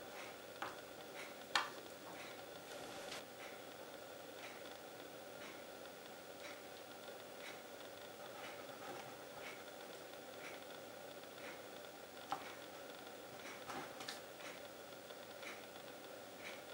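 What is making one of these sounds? A plastic knife squishes through soft jelly.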